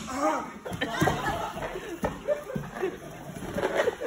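Bodies thud onto a mat.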